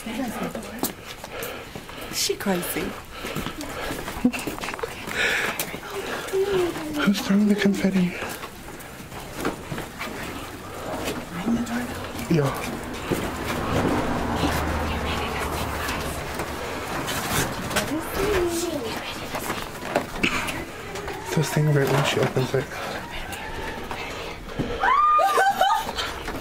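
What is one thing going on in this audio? Young children talk and call out excitedly nearby.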